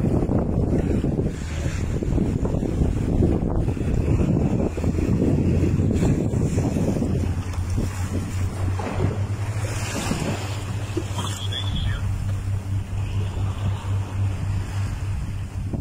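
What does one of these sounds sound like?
Wind rushes and buffets outdoors.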